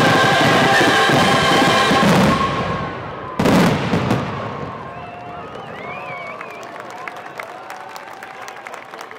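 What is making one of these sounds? Fireworks crackle and fizzle loudly as the sparks fall.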